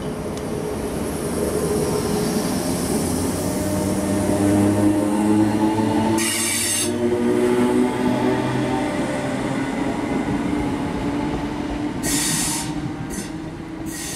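Train wheels clatter and hiss over the rails.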